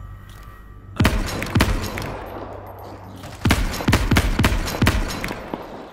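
Gunshots ring out sharply in a large echoing space.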